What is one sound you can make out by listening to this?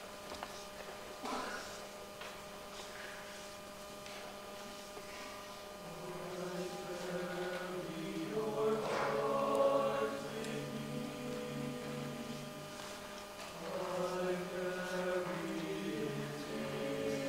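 A youth choir sings in harmony in a large hall.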